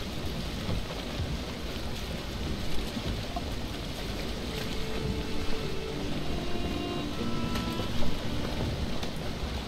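Water rushes and splashes steadily against a sailing boat's hull.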